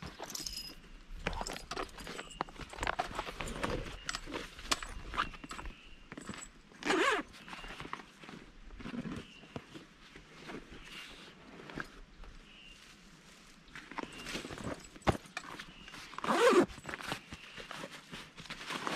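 Buckles and straps clink and rattle.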